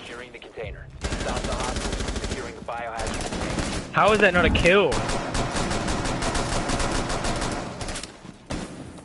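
Gunshots fire rapidly in quick bursts.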